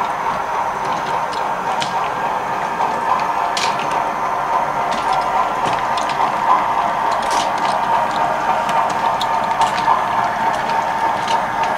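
Model train wheels click over the rail joints.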